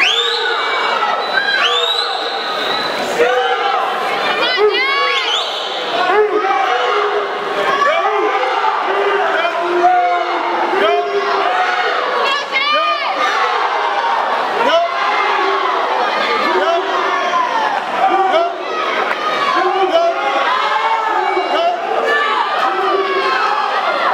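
A swimmer splashes through the water.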